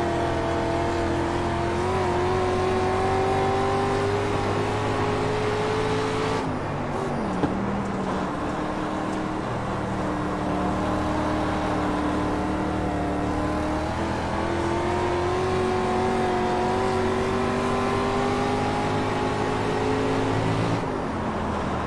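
A race car engine roars steadily, rising and falling in pitch as the car speeds up and slows down.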